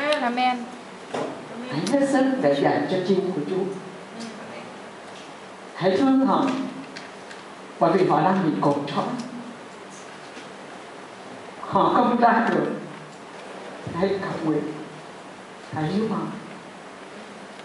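A middle-aged woman speaks slowly into a microphone over a loudspeaker in an echoing room, with pauses.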